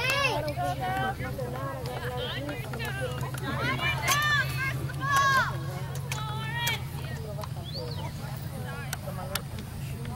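Young women shout and cheer loudly nearby, outdoors.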